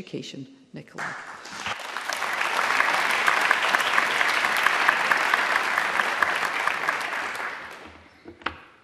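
A crowd applauds loudly in a large hall, then the clapping fades.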